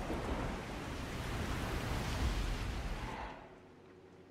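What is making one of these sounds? Stormy waves crash and roar at sea.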